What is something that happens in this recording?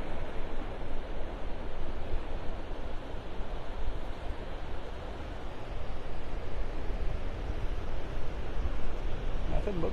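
Small waves wash and break steadily onto a beach.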